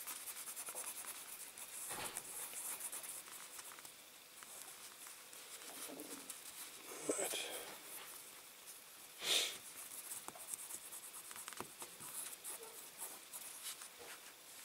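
A cotton swab rubs and scrapes softly against a small metal cap.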